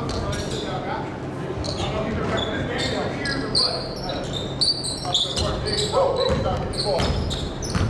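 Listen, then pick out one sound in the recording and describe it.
Players shout to each other in a large echoing gym.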